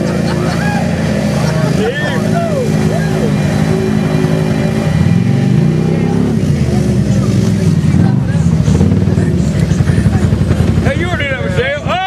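An off-road vehicle engine roars and revs loudly.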